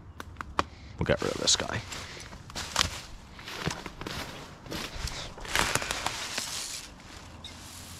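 Footsteps crunch and rustle through dry leaves.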